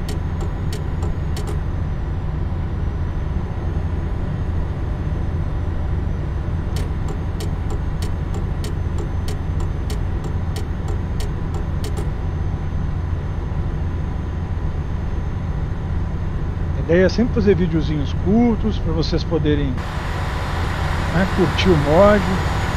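A diesel coach engine drones while cruising on an open road.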